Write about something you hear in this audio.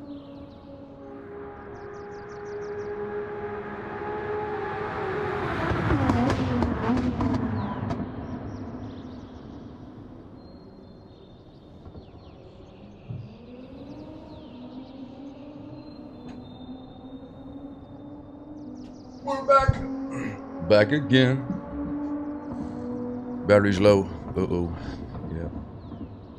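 A racing car engine roars, rising and falling in pitch as it shifts gears.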